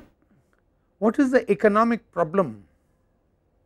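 An elderly man speaks calmly into a clip-on microphone.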